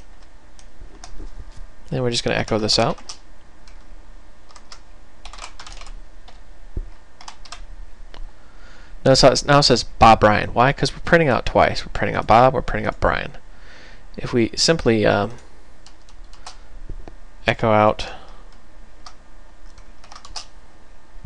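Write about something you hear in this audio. Keys click on a computer keyboard in short bursts.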